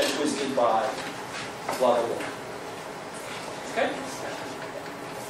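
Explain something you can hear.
A man speaks loudly in a large room, lecturing in short phrases.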